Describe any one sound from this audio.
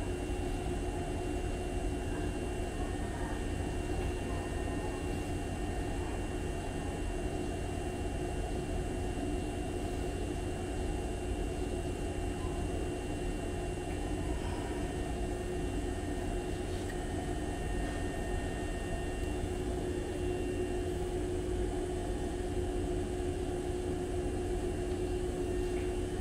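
An electric train stands still with a steady low hum from its equipment.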